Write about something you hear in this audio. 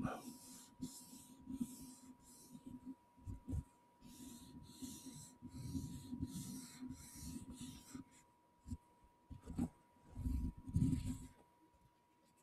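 A man whispers softly, very close to a microphone.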